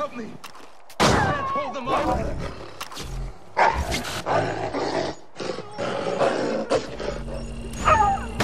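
A wolf snarls and growls while attacking.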